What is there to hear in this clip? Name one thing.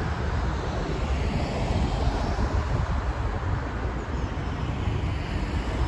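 A van drives past on the road close by.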